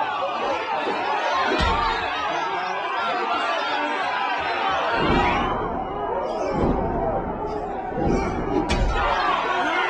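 A crowd shouts and cheers loudly around a fight.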